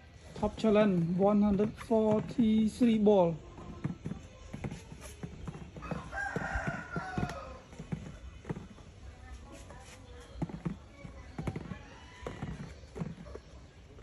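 Small plastic balls click and tap against each other.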